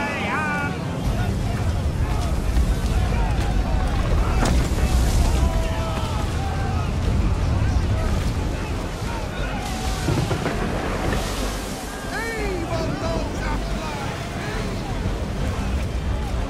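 Strong wind roars over the open sea.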